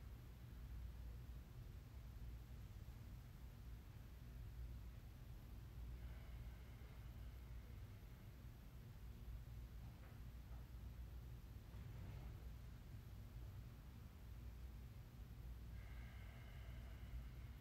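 A woman speaks calmly and softly at a distance.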